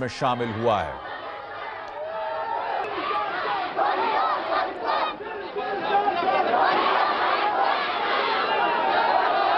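A large crowd chants and clamors outdoors.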